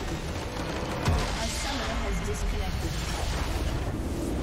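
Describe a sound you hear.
A structure explodes with a deep booming rumble.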